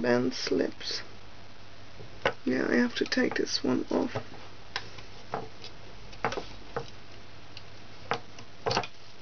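A plastic hook clicks and taps against a plastic loom.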